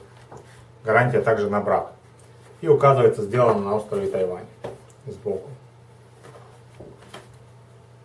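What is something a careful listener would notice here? A cardboard sleeve rustles and scrapes as it slides off a plastic case.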